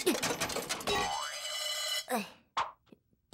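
A coin drops and rattles into a metal tray.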